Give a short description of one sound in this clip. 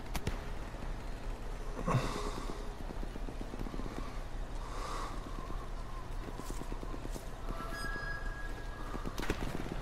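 Footsteps shuffle on cobblestones.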